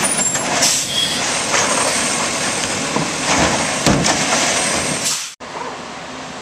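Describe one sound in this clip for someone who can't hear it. A garbage truck engine rumbles and hisses close by.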